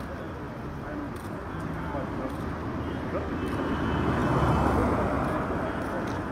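A cart's wheels roll along a dirt roadside.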